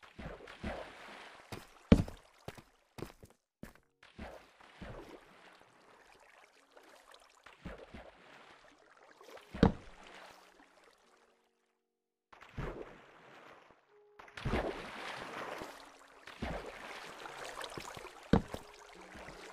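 Water swirls and splashes in bursts as a swimmer moves through it.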